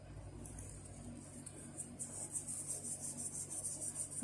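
Fingers softly rub and roll a small lump of sugar paste.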